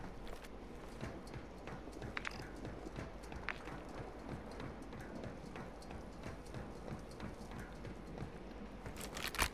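Feet clank steadily on metal ladder rungs.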